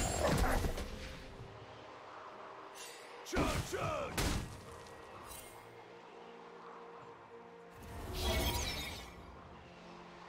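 Magic spell effects whoosh and crackle in short bursts.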